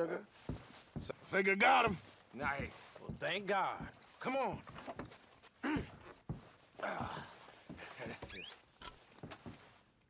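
A man talks calmly.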